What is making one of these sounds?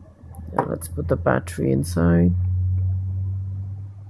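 A battery clicks as it is lifted out of a plastic casing.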